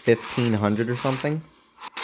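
Claws slash with a swooshing strike.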